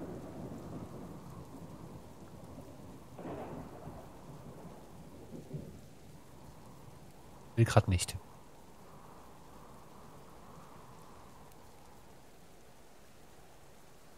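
Rain patters steadily on water.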